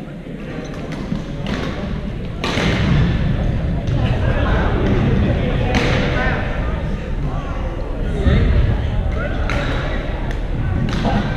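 Shuttlecocks are struck by rackets with sharp pops in a large echoing hall.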